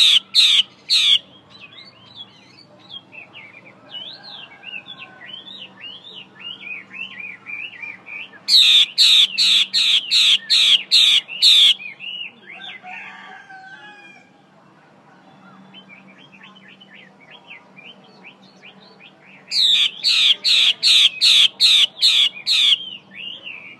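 A caged bird gives loud, sharp bursts of repeated piercing calls.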